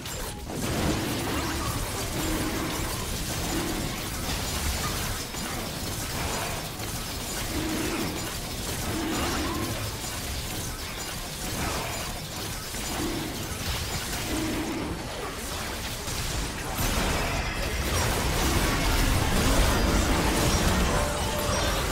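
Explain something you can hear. Fantasy game combat effects whoosh and clash repeatedly.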